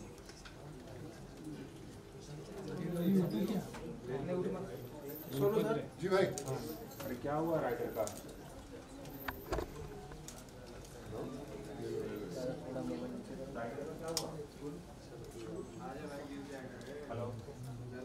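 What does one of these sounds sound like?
A crowd of men talk and call out over one another nearby.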